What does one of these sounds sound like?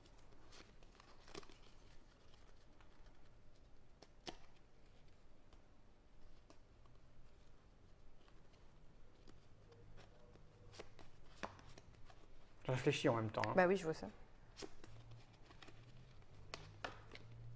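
Playing cards rustle and flick softly in a man's hands.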